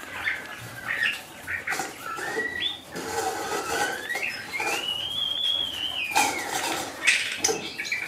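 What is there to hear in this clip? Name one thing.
A rabbit nibbles food from a hand.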